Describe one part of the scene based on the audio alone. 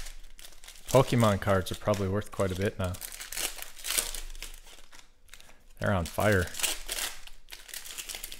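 A foil card pack crinkles and tears open.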